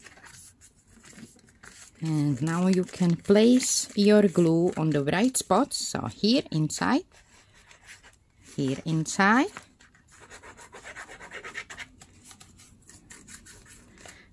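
Paper rustles and crinkles as it is folded and pressed.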